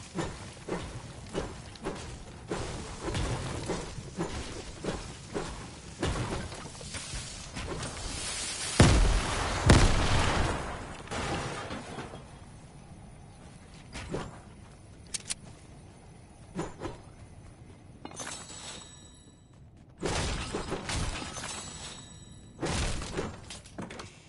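A pickaxe strikes hard surfaces again and again with sharp thuds.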